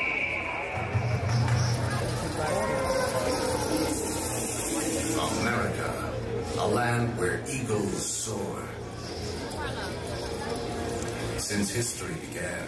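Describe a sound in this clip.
A crowd chatters and murmurs outdoors nearby.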